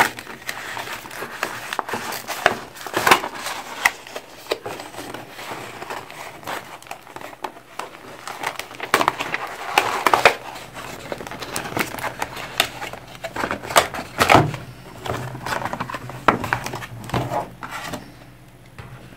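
Plastic packaging crinkles and rustles as hands unwrap it.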